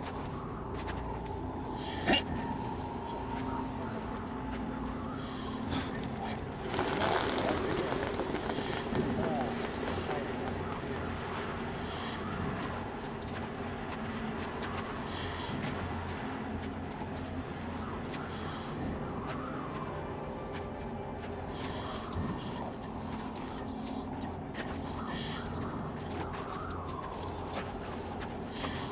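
Wind blows steadily outdoors and gusts up strongly for a few seconds.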